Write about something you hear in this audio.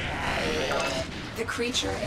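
A fiery explosion booms.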